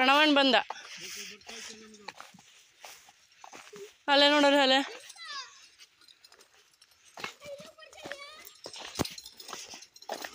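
Footsteps crunch on a gravel dirt path.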